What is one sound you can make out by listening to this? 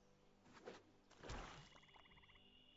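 A card lands with a soft thud.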